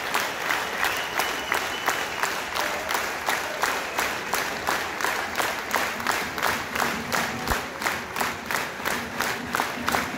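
A large crowd claps in a steady, quick rhythm.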